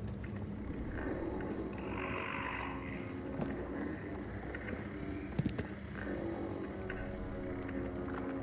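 Small footsteps creak softly on a wooden floor.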